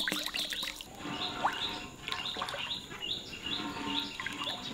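A spoon scrapes and stirs in a metal pot.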